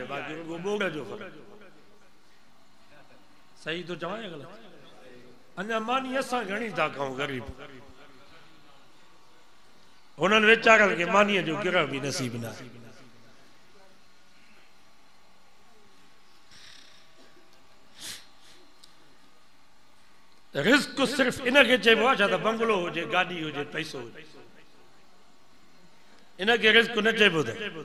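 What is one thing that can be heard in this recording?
An elderly man preaches with animation through a microphone, in bursts with long pauses.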